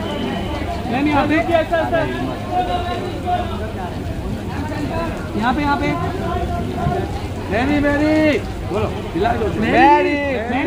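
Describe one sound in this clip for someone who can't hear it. Several men call out loudly close by, shouting for attention.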